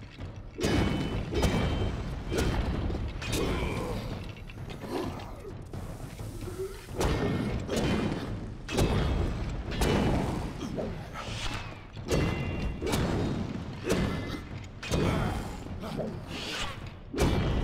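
Heavy blows thud repeatedly.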